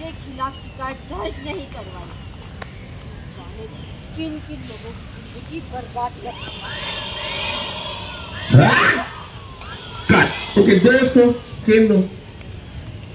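A young woman shouts angrily nearby.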